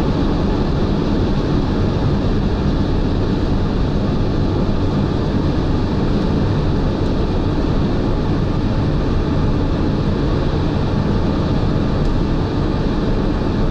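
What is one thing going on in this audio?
Tyres rumble loudly and steadily on a fast road.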